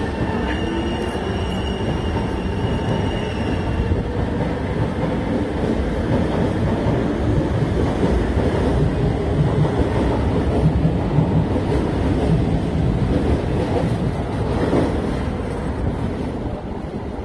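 A train rolls past nearby with a steady rumble and fades away.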